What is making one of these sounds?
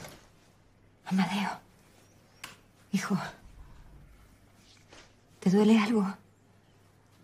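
A woman speaks softly and tenderly close by.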